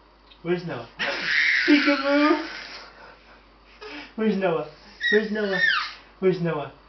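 A baby squeals and laughs.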